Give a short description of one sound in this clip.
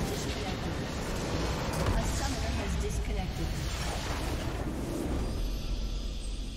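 A large crystal shatters with a loud blast in a game.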